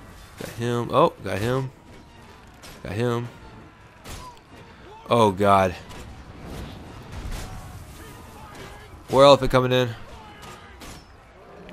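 A heavy crossbow fires with a sharp wooden thunk.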